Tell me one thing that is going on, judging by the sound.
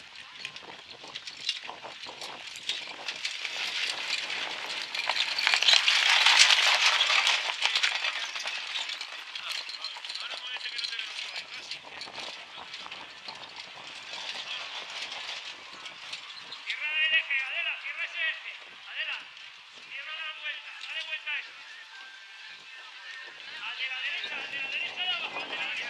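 Horses' hooves thud on packed dirt at a trot.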